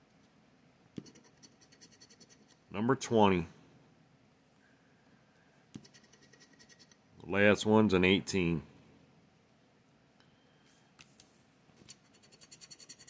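A scratcher scrapes rapidly across a card in short bursts.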